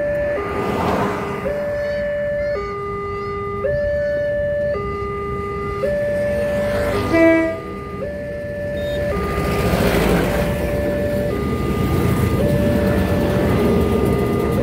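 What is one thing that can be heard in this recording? A railway crossing bell rings steadily in a fast two-tone pattern.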